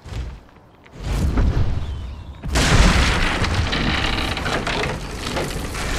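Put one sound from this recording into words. A large beast leaps and lands with a heavy rumbling crash.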